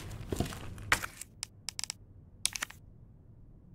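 Menu clicks sound in quick succession.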